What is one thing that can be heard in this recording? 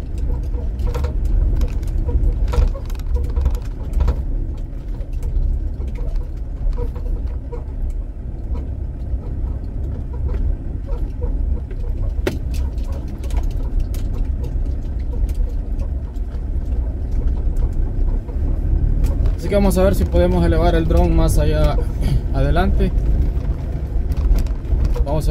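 A vehicle engine rumbles low and steady from inside the cabin.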